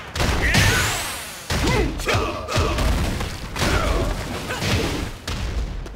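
Loud energy blasts whoosh and crackle.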